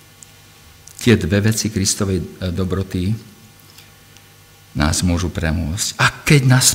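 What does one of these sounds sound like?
A middle-aged man speaks slowly and haltingly into a microphone.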